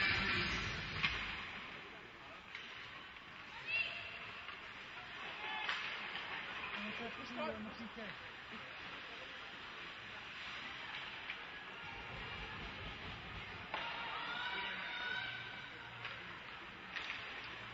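Hockey sticks click and smack against the puck.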